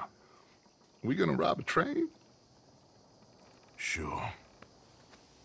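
A second man answers in a low, gruff voice.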